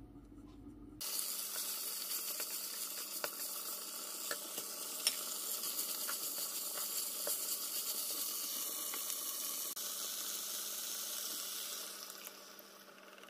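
Food sizzles loudly in a hot frying pan.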